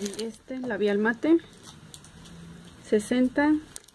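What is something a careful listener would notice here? Plastic wrapping crinkles as it is handled close by.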